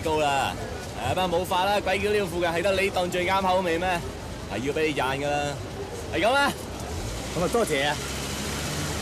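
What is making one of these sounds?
A young man talks up close with another man.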